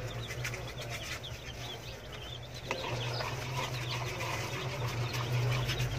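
A metal spoon clinks against a plastic bowl.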